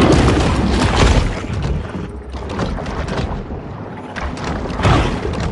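A deep, muffled underwater rumble churns on.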